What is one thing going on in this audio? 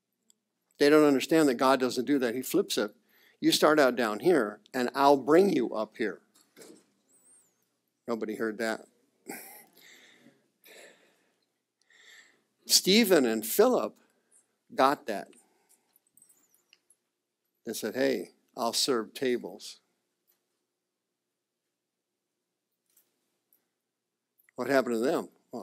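A middle-aged man speaks with animation, in short bursts with pauses.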